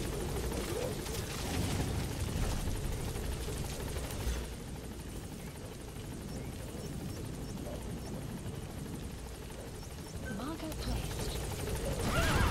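Horse hooves thud on soft ground.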